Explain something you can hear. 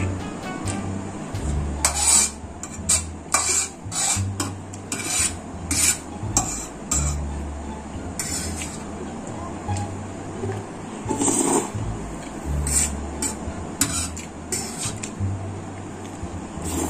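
A fork scrapes and taps against a plastic tray.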